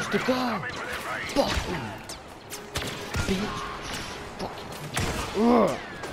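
A blaster fires rapid shots.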